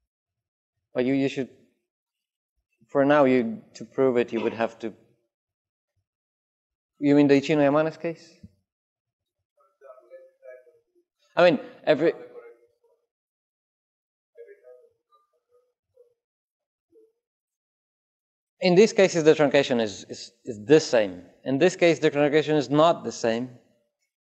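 A man lectures in short bursts with pauses, heard through a microphone.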